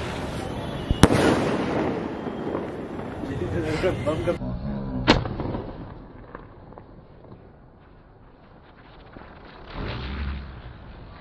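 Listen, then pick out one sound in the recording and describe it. Fireworks explode with loud sharp bangs.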